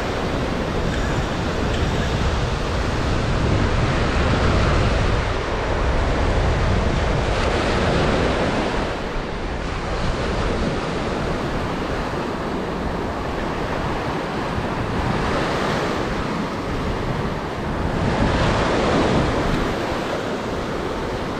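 Waves break and wash up on a beach close by, outdoors in wind.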